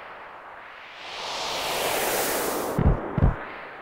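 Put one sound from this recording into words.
A magical whoosh rushes up as a figure vanishes in a puff of smoke.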